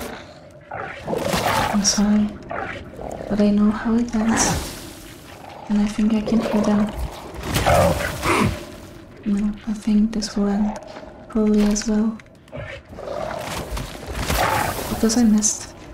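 Heavy blows thud against flesh.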